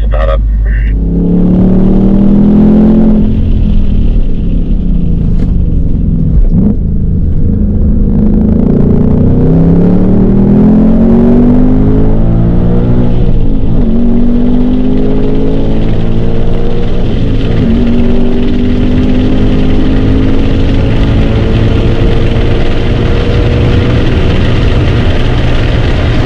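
A car engine roars loudly, revving up and shifting gears as it speeds along.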